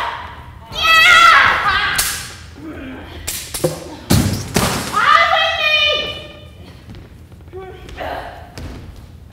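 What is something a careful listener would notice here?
A young woman shouts with effort.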